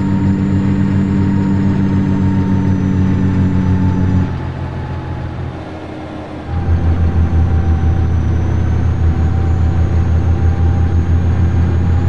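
A truck engine rumbles steadily, dropping briefly and then growing louder again.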